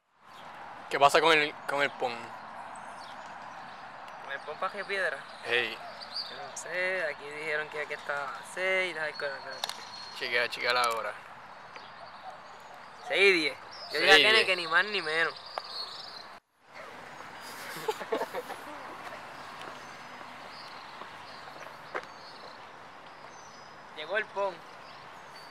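A young man talks casually close to a microphone, outdoors.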